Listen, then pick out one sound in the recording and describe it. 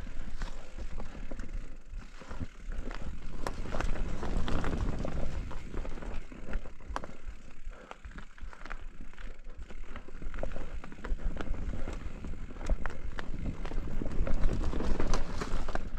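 A bicycle frame and chain rattle and clatter over bumps.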